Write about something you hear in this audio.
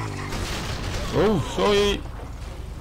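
A motorcycle crashes into a wooden fence with a loud crack.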